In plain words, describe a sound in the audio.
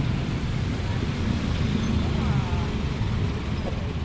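Motorbikes and cars rumble past on a street.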